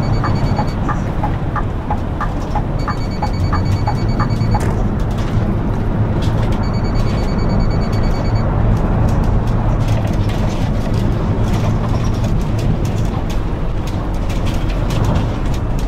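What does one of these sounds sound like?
A bus engine hums low and steadily.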